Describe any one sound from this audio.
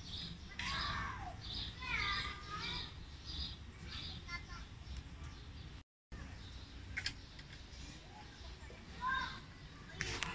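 A crow caws and croaks nearby.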